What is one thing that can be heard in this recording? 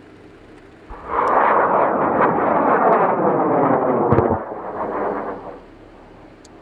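A rocket engine roars loudly as a rocket lifts off in the distance.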